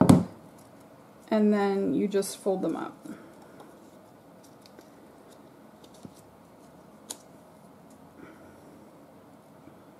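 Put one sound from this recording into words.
Stiff paper crinkles softly as it is folded by hand.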